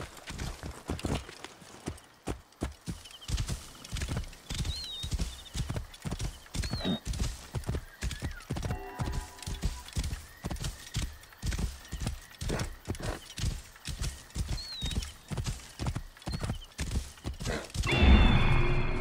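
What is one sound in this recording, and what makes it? A horse gallops with rapid, rhythmic hoofbeats on a dirt path.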